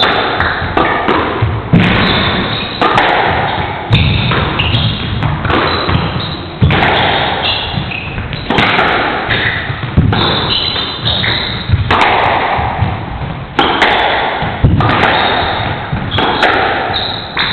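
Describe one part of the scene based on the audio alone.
Sneakers squeak on a wooden floor as players dash about.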